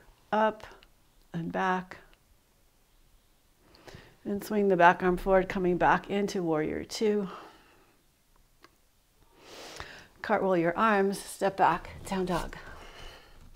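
A woman speaks calmly and clearly, giving slow instructions through a close microphone.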